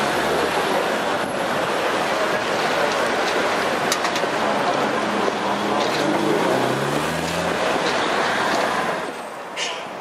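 A railway carriage rumbles slowly over points and rails.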